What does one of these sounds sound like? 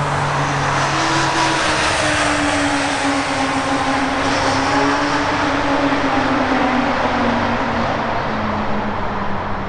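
A twin-engine jet airliner roars at full thrust as it takes off and climbs away.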